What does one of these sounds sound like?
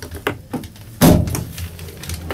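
A truck door latch clicks open with a sharp thud.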